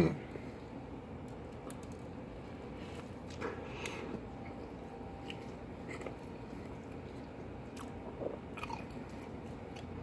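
A man chews food and smacks his lips.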